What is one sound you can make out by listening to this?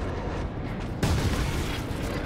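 A heavy gun fires a short burst.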